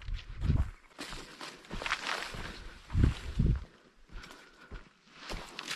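Leafy branches rustle and scrape as someone pushes through a bush.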